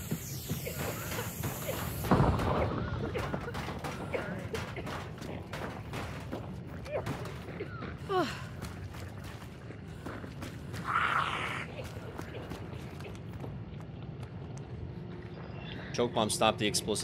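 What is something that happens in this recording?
Footsteps thud across a metal roof.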